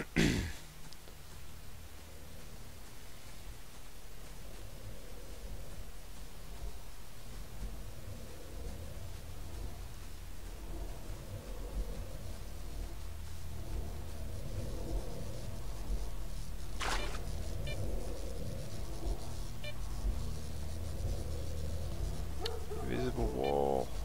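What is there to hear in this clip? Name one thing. Footsteps rustle through grass at a steady walking pace.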